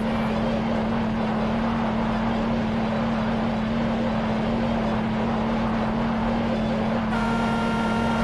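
A car engine hums steadily as a car drives along.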